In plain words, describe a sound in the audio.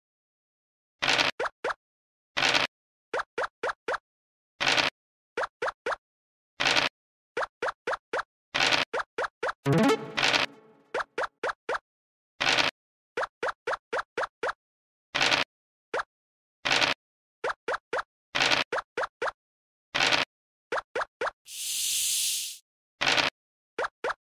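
Game dice rattle as they roll.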